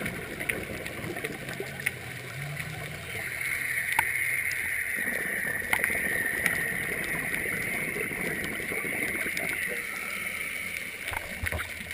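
Air bubbles from a diver's breathing gurgle and rumble underwater.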